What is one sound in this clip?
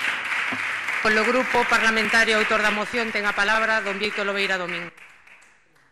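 A young woman speaks calmly through a microphone in a large echoing hall.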